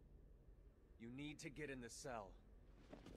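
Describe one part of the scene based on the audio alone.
A young man speaks urgently.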